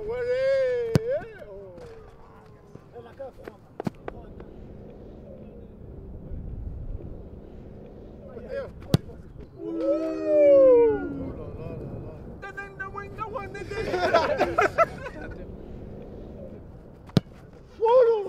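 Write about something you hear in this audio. A ball is kicked hard with a sharp thud.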